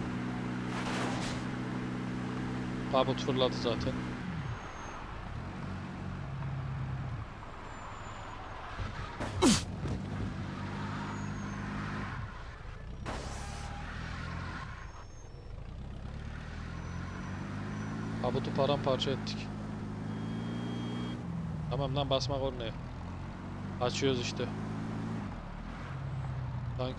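A car engine hums and revs steadily, rising and falling in pitch.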